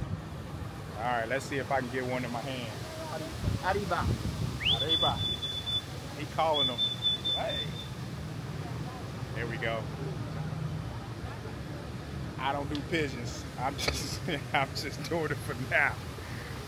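A man talks cheerfully and close by.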